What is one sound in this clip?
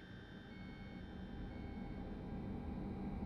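A train engine hums steadily close by.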